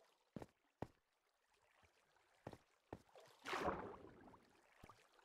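Footsteps tap on stone at a walking pace.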